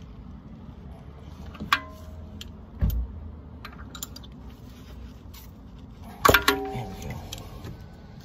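A ratchet wrench clicks as a bolt is loosened.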